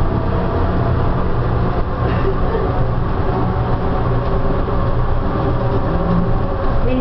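A train hums and rumbles steadily along its track.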